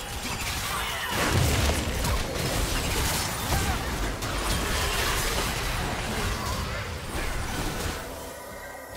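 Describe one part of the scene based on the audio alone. Magic spells blast and crackle in a fast fight.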